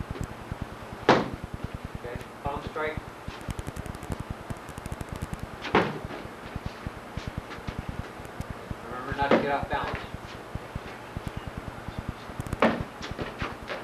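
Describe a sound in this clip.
Fists and feet thump hard against a padded shield.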